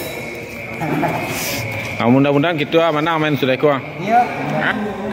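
A middle-aged man laughs close by.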